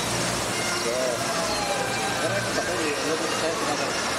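A waterfall pours steadily.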